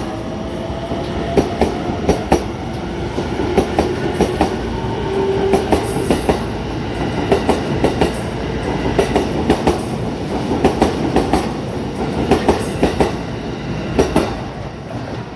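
A train rushes past at speed with a loud roar.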